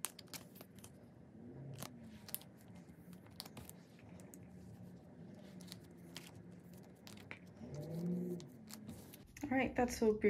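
Plastic sleeves rustle and crinkle as cards slide into them.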